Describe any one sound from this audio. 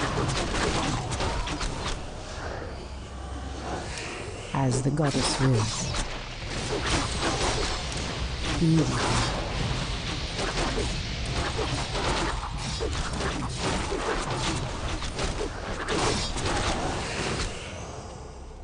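Weapons clash and clang rapidly in a fierce fight.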